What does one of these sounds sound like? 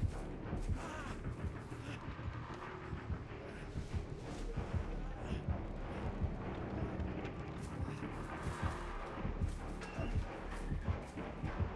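Footsteps rustle softly through grass.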